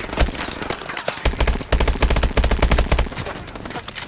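A rifle fires in rapid bursts at close range.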